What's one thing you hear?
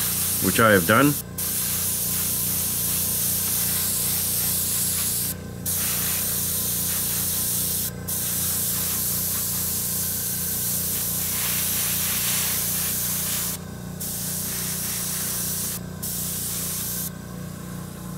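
An airbrush hisses steadily, stopping briefly a few times.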